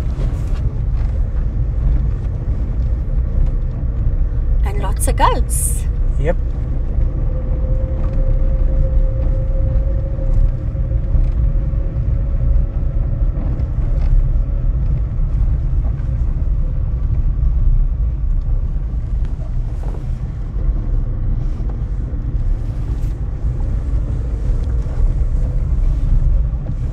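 Tyres crunch over a sandy dirt road.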